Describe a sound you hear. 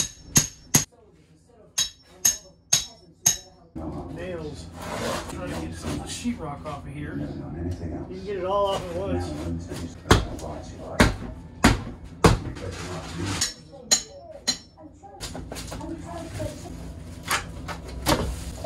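A hammer knocks sharply against a wall, again and again.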